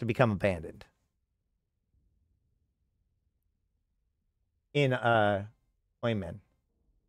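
A man speaks animatedly into a close microphone, in short bursts.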